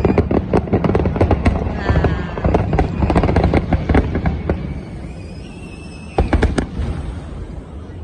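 Fireworks boom and crackle loudly overhead.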